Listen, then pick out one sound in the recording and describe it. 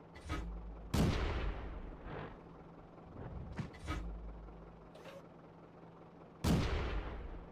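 A tank cannon fires with a booming, echoing report.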